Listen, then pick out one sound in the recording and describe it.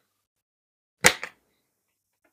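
Cards rustle softly as a card is pulled from a deck.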